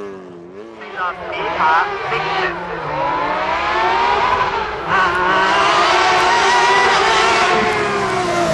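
A racing car engine screams at high revs, rising in pitch between quick gear changes.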